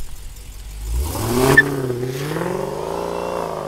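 A car engine roars as the car accelerates away.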